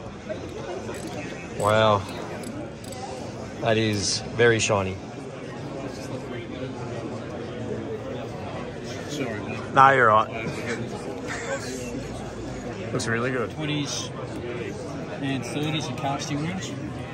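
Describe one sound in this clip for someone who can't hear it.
A crowd murmurs in the background of a large hall.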